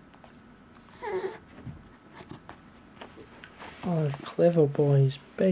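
A small dog whines and yips close by.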